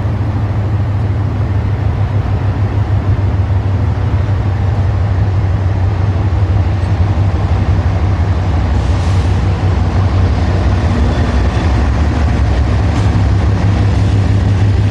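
A diesel locomotive rumbles closer, its engine droning louder.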